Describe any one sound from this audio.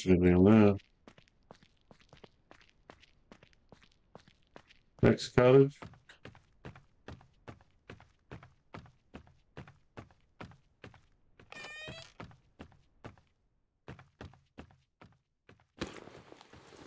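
Footsteps tap steadily on stone and wooden boards.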